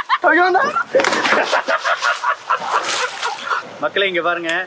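Water splashes as a swimmer kicks.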